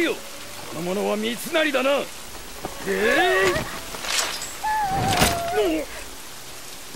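A man shouts in a strained, angry voice.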